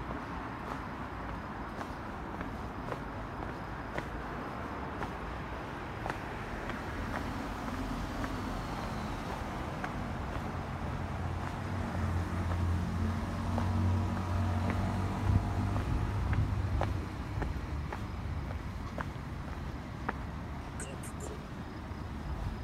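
City traffic hums steadily in the distance outdoors.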